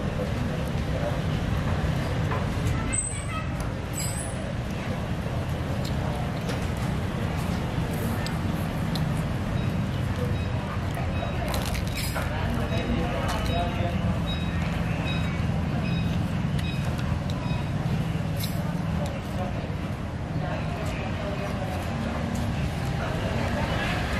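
A fork scrapes and clinks against a dish.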